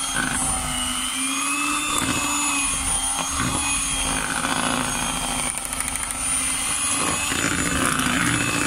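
An electric hand mixer whirs steadily as it beats a thick mixture.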